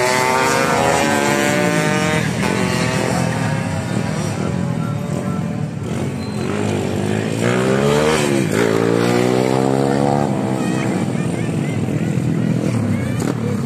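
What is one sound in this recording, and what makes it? Motorcycle engines rev loudly, rising and falling over and over.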